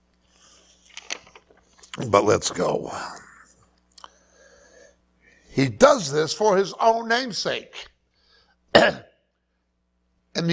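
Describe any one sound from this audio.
A middle-aged man speaks with animation through a clip-on microphone.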